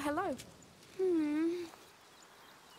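A goat bleats nearby with a wavering cry.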